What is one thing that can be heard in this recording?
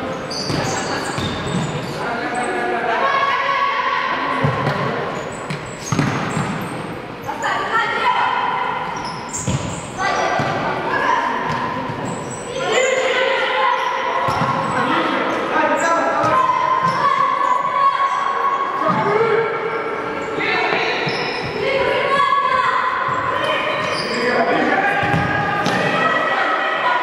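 A futsal ball is kicked with sharp thuds that echo in a large hall.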